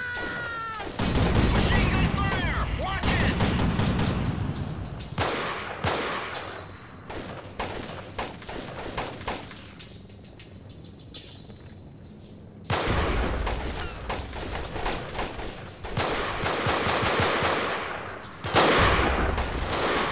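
Rifles fire rapid bursts that echo in a tunnel.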